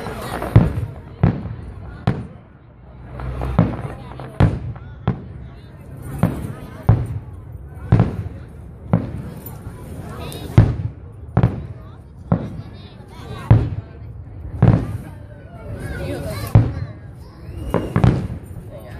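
Fireworks burst with loud booms, one after another, echoing outdoors.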